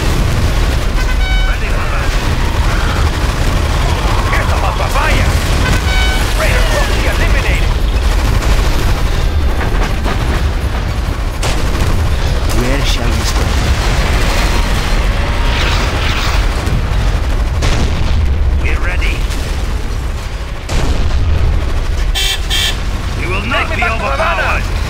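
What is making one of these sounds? Explosions boom and rumble again and again.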